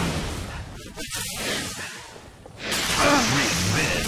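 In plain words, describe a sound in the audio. An energy sword slashes with a sharp whoosh.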